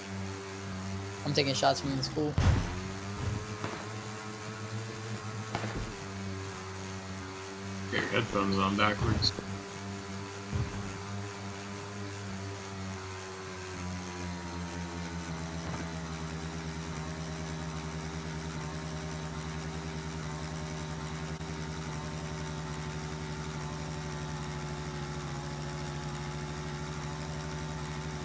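A motorcycle engine drones steadily as it drives over rough ground.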